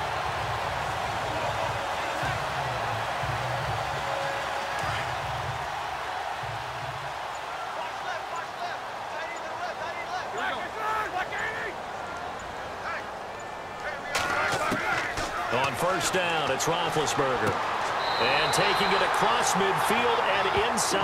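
A large stadium crowd roars steadily, growing louder near the end.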